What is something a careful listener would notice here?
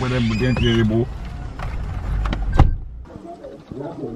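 A car engine rumbles from inside the car.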